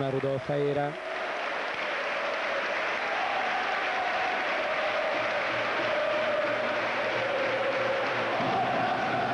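A large crowd cheers and roars in an echoing arena.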